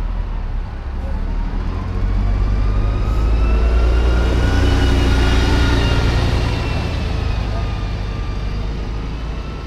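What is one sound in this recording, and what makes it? A bus engine rumbles loudly as the bus drives slowly past.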